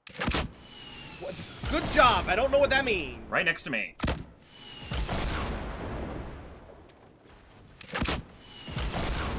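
A rocket launcher fires with a sharp whoosh.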